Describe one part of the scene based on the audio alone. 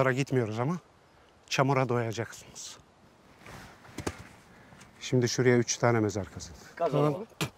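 A middle-aged man speaks calmly and firmly nearby.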